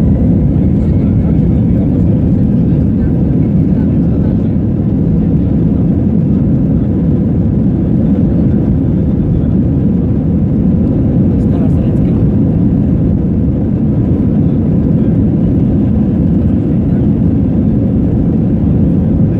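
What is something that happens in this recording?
A plane's wheels rumble over the runway.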